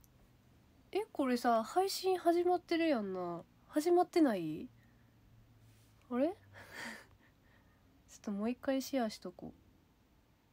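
A young woman speaks close to a microphone, chatting with animation.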